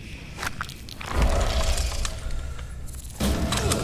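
A large creature skitters and hisses.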